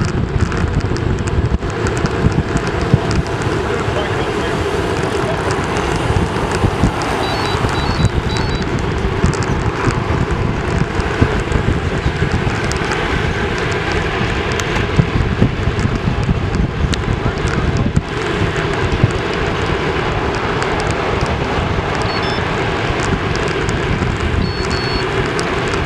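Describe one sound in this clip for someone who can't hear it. Wind buffets loudly across a bicycle as it rides fast.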